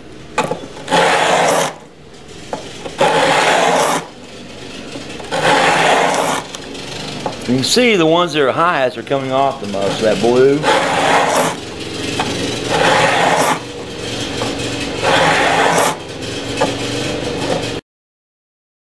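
A sanding block rasps back and forth in strokes.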